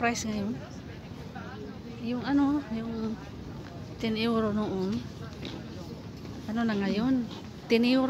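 Men and women chatter at a distance in an outdoor crowd.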